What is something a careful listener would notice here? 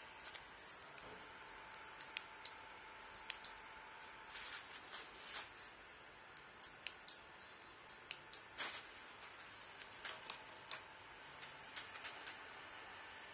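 Small plastic buttons click sharply, again and again.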